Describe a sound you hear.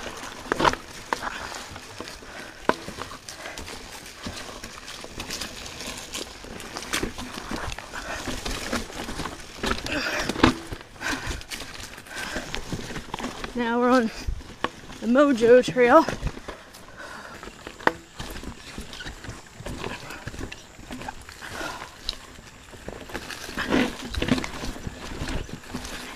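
A bicycle rattles and clatters over bumps and rocks.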